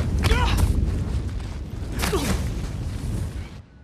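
An owl's wings flap hard.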